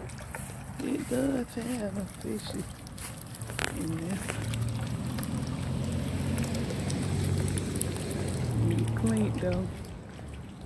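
Water from a small fountain bubbles and splashes into a pond nearby.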